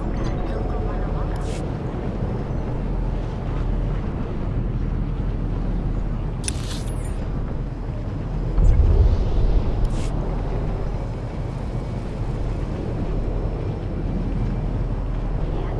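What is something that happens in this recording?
A hover bike's engine hums steadily with a low rumble.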